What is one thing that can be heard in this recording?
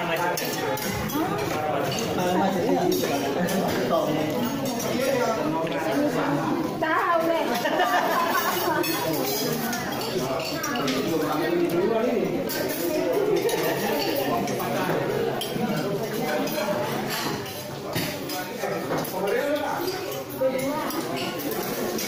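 Many men and women chatter and talk over one another close by.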